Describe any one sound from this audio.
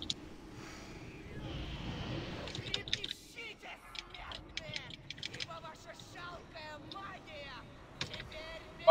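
Magic spells crackle and chime in a busy battle.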